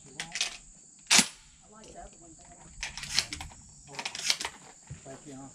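A rifle's action clacks as it is worked by hand.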